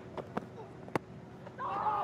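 A cricket bat sharply strikes a ball.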